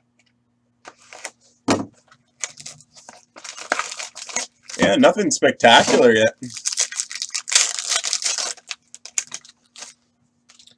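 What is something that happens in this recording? Plastic wrapping crinkles and tears.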